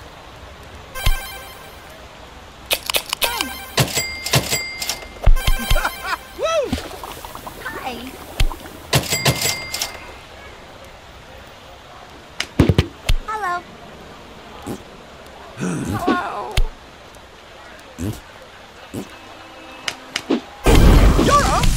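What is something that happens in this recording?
Bright electronic chimes and pings sound in short bursts.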